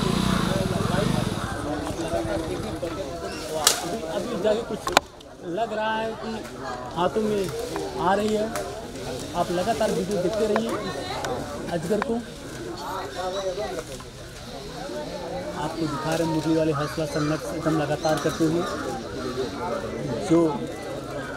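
Leaves rustle as a man climbs among the branches of a tree.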